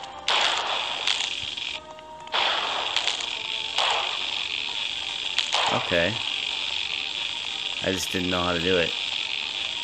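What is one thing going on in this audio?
An electric beam crackles and hisses in sharp bursts.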